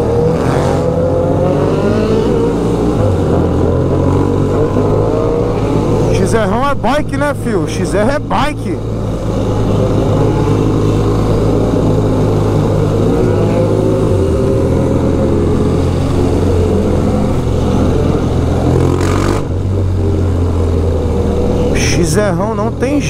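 A motorcycle engine rumbles steadily up close, rising and falling in pitch with speed.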